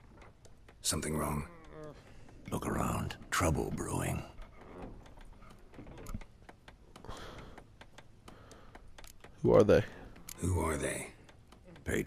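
A man speaks in a low, gravelly voice, close by.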